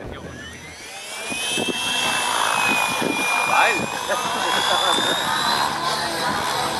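A model helicopter's motor whines and rises in pitch as the rotor spins up.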